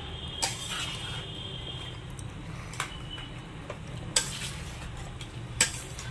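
A metal spoon clinks against a metal bowl while stirring.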